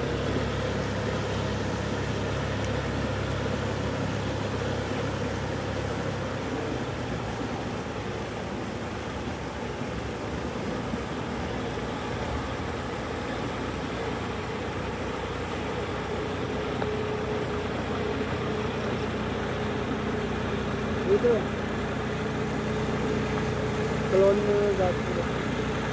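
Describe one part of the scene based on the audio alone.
Water and mud churn and splash under tractor wheels.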